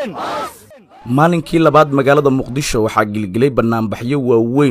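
A large crowd of men chants loudly outdoors.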